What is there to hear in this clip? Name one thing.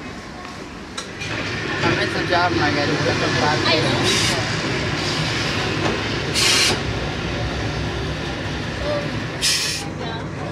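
A tram rumbles closer along its rails.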